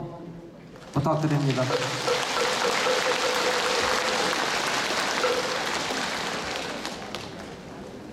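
A large crowd claps, echoing through a big hall.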